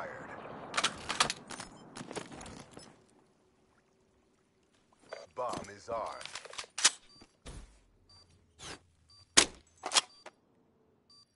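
Gunshots crack in quick bursts, then stop.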